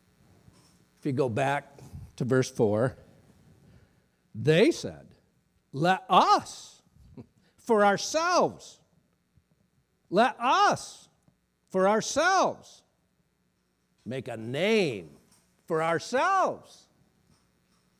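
A middle-aged man speaks with emphasis into a microphone, in short bursts with pauses, in a large echoing hall.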